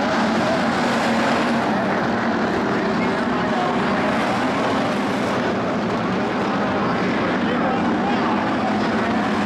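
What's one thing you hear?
Several race car engines roar loudly and steadily.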